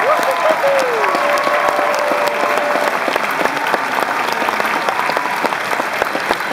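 A large crowd whistles and screams with excitement.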